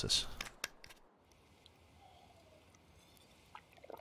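Someone gulps a drink.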